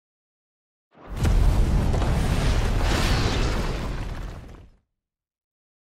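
A fiery explosion roars and crackles.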